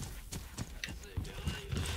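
Boots crunch on snow.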